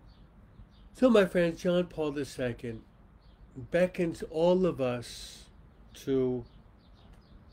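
A middle-aged man speaks calmly and slowly into a microphone, close by.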